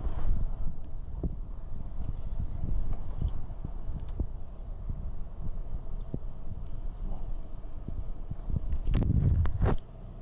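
Wind gusts outdoors, rustling tall grass and buffeting the microphone.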